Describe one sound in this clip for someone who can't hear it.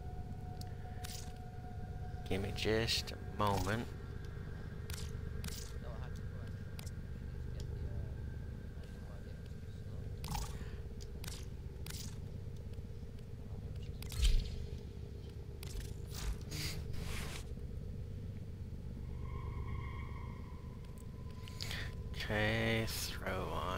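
Soft electronic menu clicks and chimes sound now and then.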